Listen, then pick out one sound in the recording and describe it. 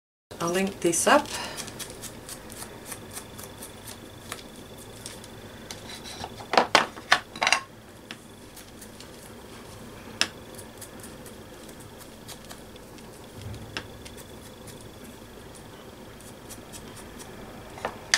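An ink blending tool dabs and taps on paper.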